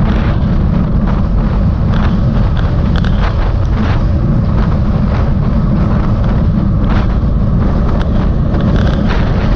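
Tyres hum steadily on a paved road.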